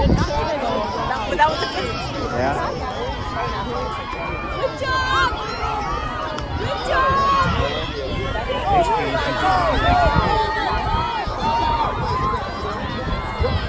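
A crowd of men and women cheers and shouts loudly outdoors.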